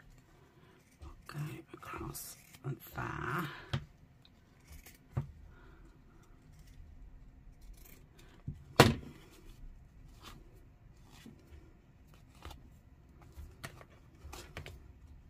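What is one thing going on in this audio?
Fabric and paper rustle as they are handled.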